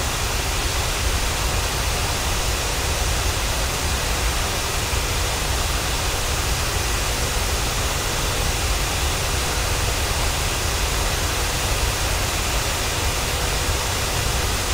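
The turbofan engines of a jet airliner roar steadily in cruise.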